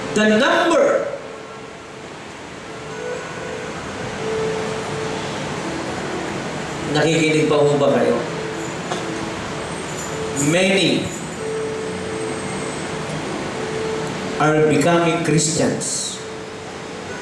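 A man speaks with animation through a microphone in a reverberant hall, in short bursts with pauses.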